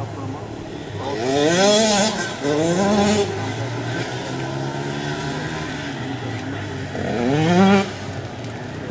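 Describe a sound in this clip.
Dirt bike engines whine and rev, rising and falling in pitch.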